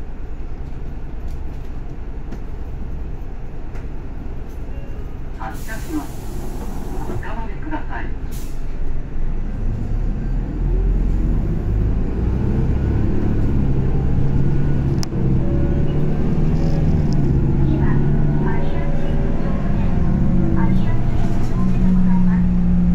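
A bus engine idles with a low hum, then revs up and grows louder as the bus pulls away.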